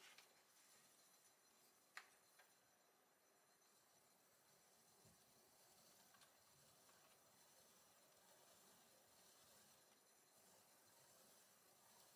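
A metal tool scrapes softly against wet clay.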